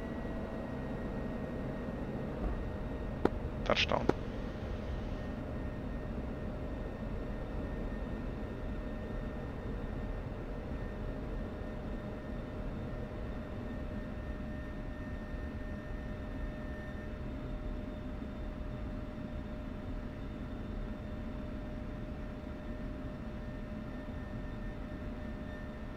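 A jet engine roars steadily with a constant whine.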